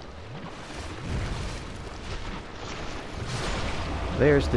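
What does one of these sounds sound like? A sword strikes flesh with heavy thuds.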